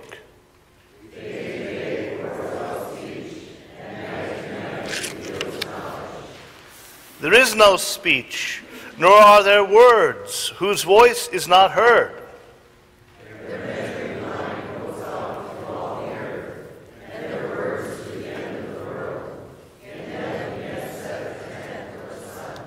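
A man reads aloud calmly through a microphone.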